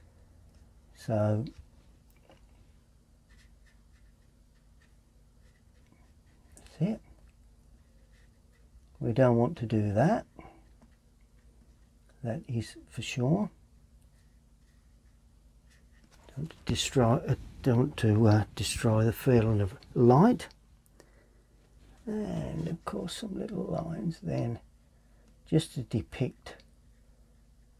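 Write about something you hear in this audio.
An elderly man talks calmly and close by, in short phrases with pauses.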